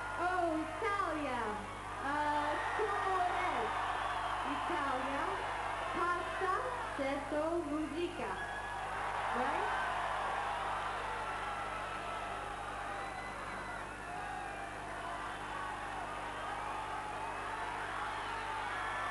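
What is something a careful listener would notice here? A large crowd cheers and whistles loudly outdoors.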